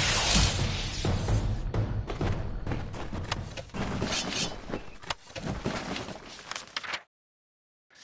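Sword blows and impacts clash in a fight.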